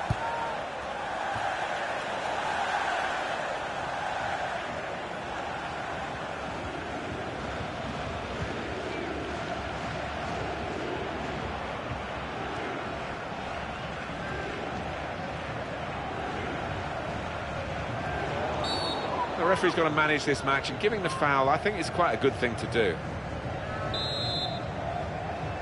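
A stadium crowd roars and chants steadily.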